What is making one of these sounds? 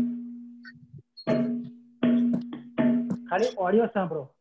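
A tabla drum is struck and rings.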